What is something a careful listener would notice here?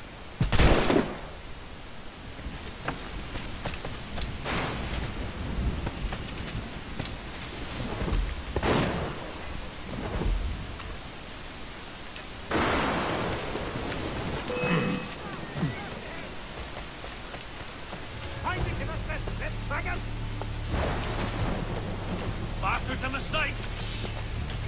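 Footsteps rustle quickly through leaves and brush.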